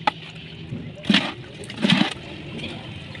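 A bucket scrapes wet concrete from a pit.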